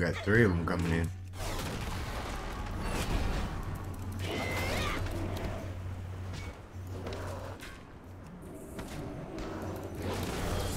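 Weapons clash and thud in a game fight.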